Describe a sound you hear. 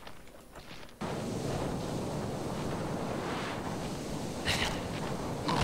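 A magic blast bursts with a loud, rushing whoosh.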